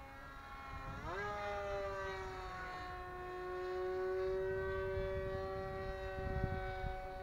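The electric motor of a small model aircraft whines steadily and rises sharply in pitch, then holds.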